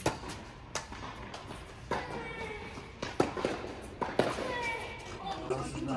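Tennis balls bounce on a hard court.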